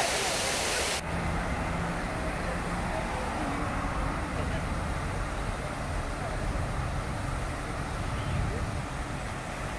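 Cars drive past on a road with a low rumble.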